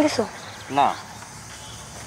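A young woman answers briefly and calmly.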